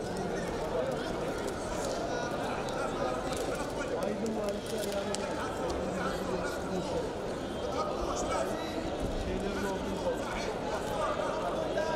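Wrestlers' feet scuff and thump on a mat.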